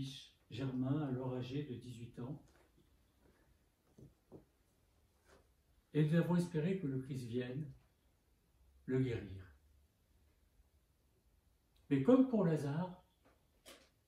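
An elderly man speaks solemnly in short bursts with pauses.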